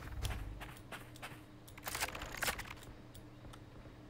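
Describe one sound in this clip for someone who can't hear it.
A knife swishes through the air.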